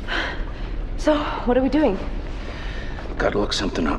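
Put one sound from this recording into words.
A man asks a quiet, tense question close by.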